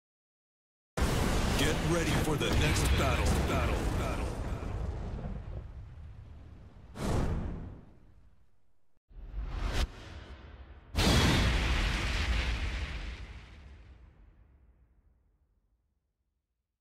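A loud explosion booms and slowly rumbles away.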